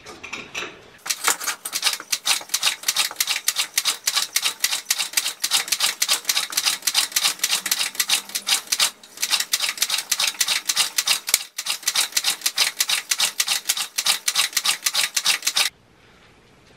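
A small scooter engine runs with a fast, rattling putter, then cuts out.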